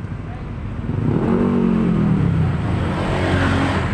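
A bus engine hums close by.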